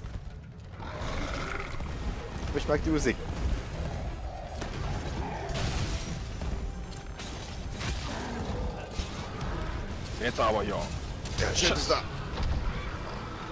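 A monster roars and growls.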